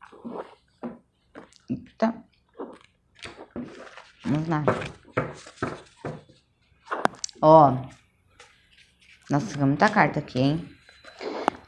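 Cards shuffle and flick against each other.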